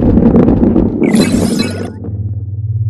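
A bright chime rings out as a ball passes through a ring.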